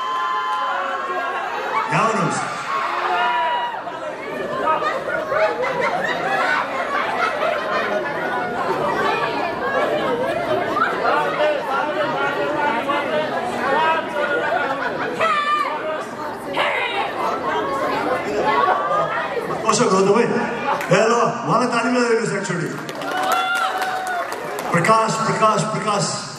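A man sings through a microphone over loudspeakers.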